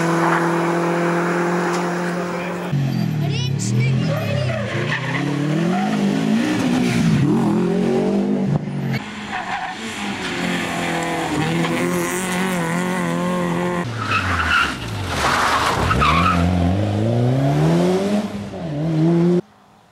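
A rally car engine revs hard and roars past, shifting gears.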